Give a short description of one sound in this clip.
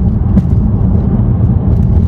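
An oncoming car passes by.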